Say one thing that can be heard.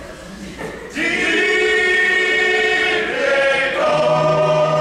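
A group of young men and women sing together in a large hall, heard from a distance.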